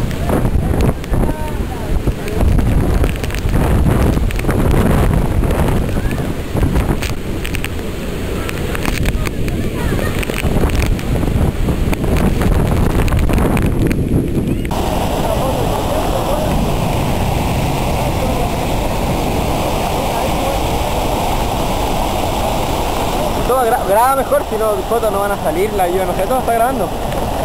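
A huge waterfall roars loudly and steadily close by.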